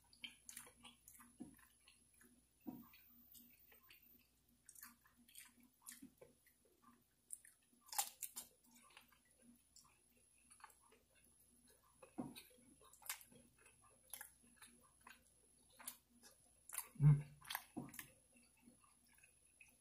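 Fingers pick at food on a plate with soft wet clicks.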